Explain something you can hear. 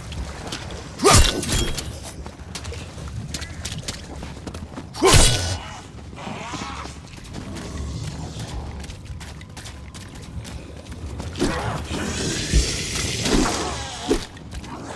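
A gun fires loud, sharp shots.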